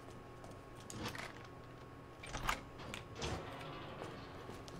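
A metal gate rattles and clanks open.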